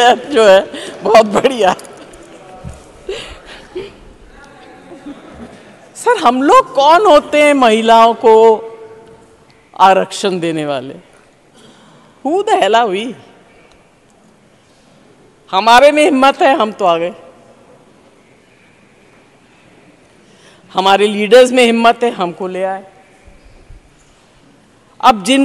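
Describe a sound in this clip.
An elderly woman speaks in bursts with some irritation into a microphone.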